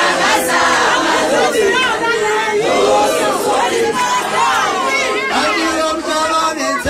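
A young man sings loudly into a microphone through a loudspeaker.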